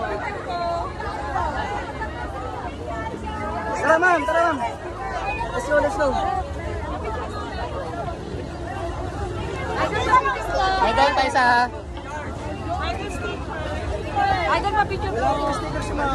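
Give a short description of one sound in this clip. A woman laughs and talks cheerfully close by.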